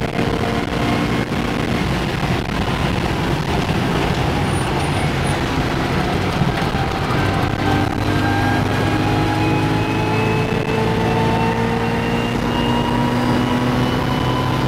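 A race car engine roars loudly, rising in pitch as it accelerates through the gears.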